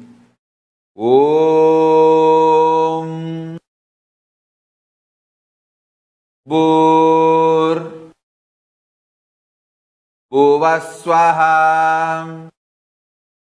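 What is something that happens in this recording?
A man chants long, held notes.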